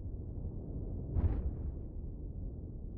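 A spaceship thruster bursts with a short roar.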